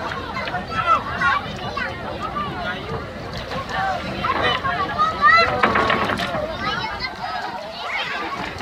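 A crowd of men and children talk and shout nearby, outdoors.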